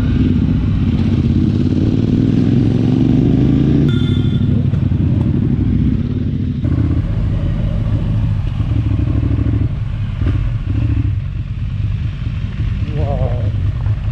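A motorcycle engine hums and revs steadily up close.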